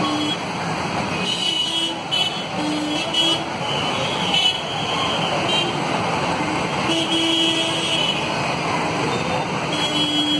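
Vehicle horns beep in short bursts again and again.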